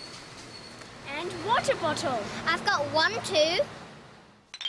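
A young girl speaks cheerfully close by.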